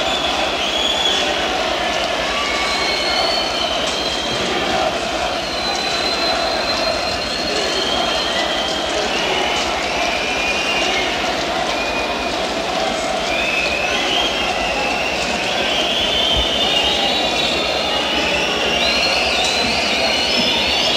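A man sings into a microphone.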